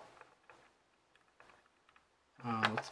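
A small button clicks softly a few times.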